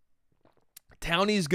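A man speaks loudly and drawn-out into a close microphone.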